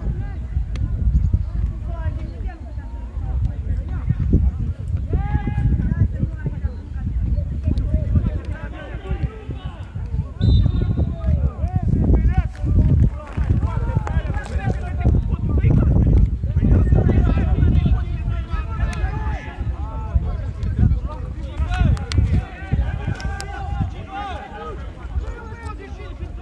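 Men shout and call out at a distance.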